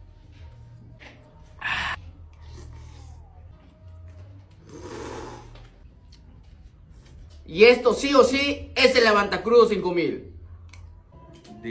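A man slurps noodles up close.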